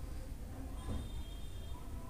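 A glass pot lid clinks as it is lifted.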